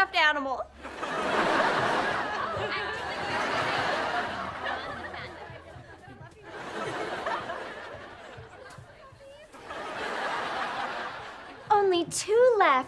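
A group of girls cheers and laughs.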